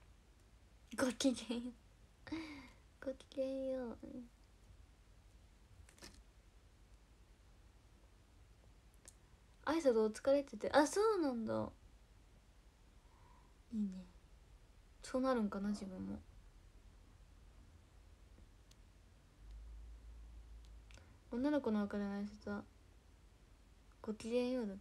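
A young woman talks close to a phone microphone in short bursts.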